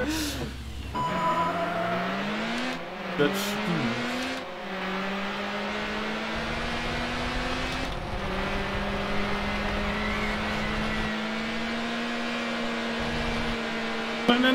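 A car engine roars, rising in pitch as it speeds up, then holds a steady drone.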